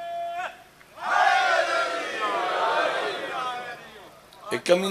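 A crowd of men chants loudly together.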